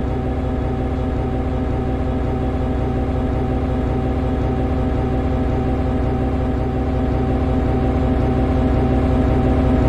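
An electric locomotive hums steadily as it rolls along the track, growing slightly louder.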